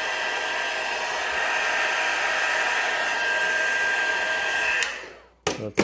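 A heat gun blows with a steady whirring hiss, then switches off.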